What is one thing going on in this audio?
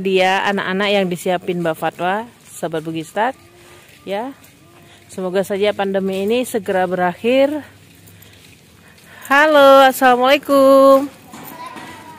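A child sings a melodic chant loudly and close by.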